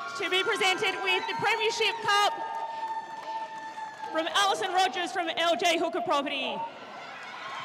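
A crowd cheers and whistles outdoors.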